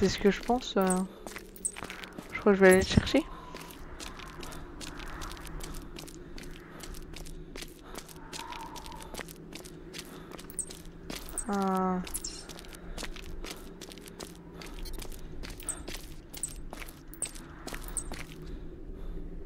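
Footsteps crunch in snow at a steady pace.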